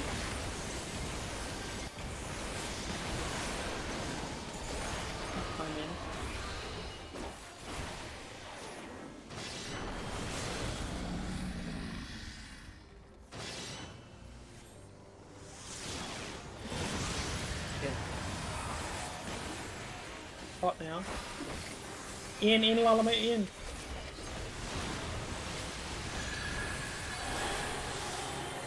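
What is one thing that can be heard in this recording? Magic blasts crash and roar in a fierce video game battle.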